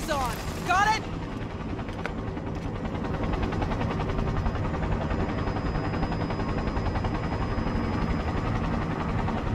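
A vehicle engine hums low and steady.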